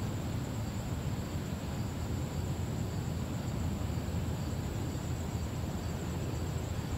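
Wind blows steadily outdoors, rumbling and rustling through pine branches.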